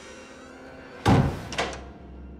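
A door bangs shut nearby.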